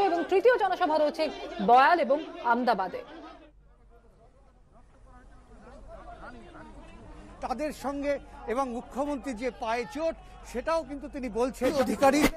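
A woman speaks loudly into a microphone.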